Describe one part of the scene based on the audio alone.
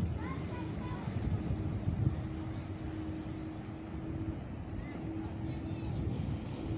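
Small waves lap gently against rocks.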